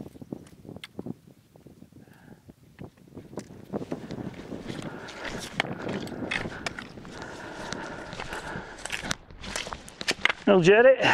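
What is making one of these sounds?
Hiking poles tap against stones.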